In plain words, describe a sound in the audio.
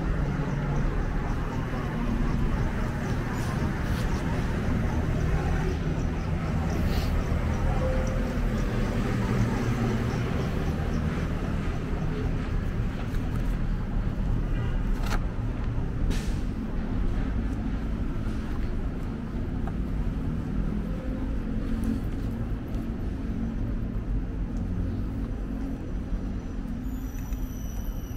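Footsteps tap on a pavement close by.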